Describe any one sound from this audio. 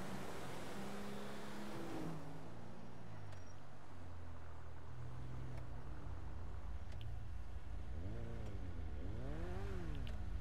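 A heavy vehicle's engine rumbles and revs as it drives along.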